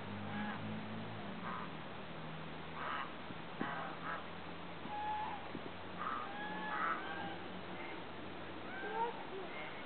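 Geese honk nearby, on and off, outdoors.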